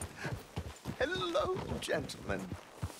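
A man speaks with animation into a microphone, close by.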